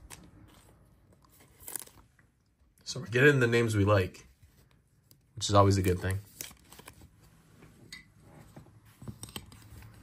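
A card slides into a stiff plastic sleeve.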